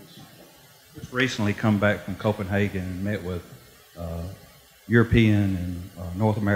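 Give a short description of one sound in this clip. A man speaks steadily into a microphone.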